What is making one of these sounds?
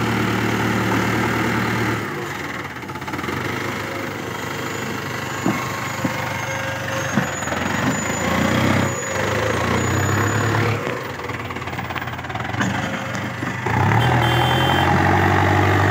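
A tractor engine chugs loudly nearby.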